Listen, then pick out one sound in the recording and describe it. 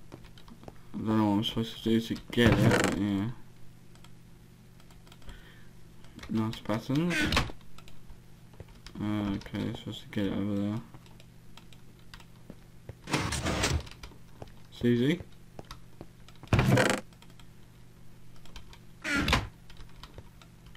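A wooden chest creaks open and thuds shut.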